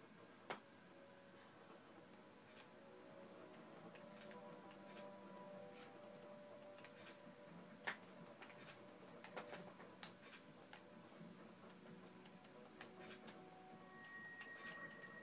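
Soft electronic music plays from a television.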